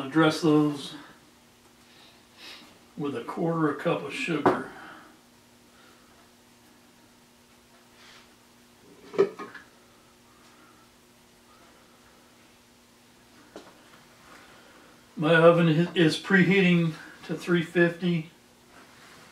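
A middle-aged man talks calmly close by, in short bursts.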